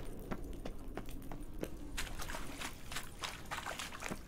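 Footsteps run across rocky ground.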